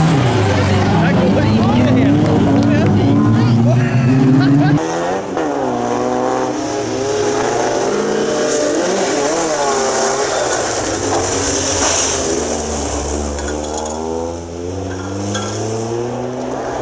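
A rally car engine roars and revs hard through gear changes.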